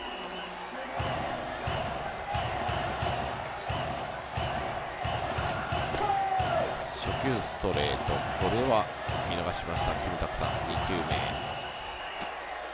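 A stadium crowd cheers and chants steadily.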